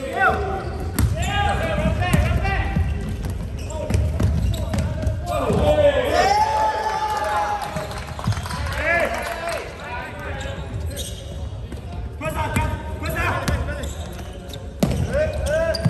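A basketball bounces on the floor with hollow thuds.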